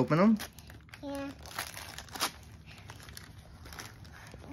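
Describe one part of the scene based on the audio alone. Wrapping paper rustles and crinkles.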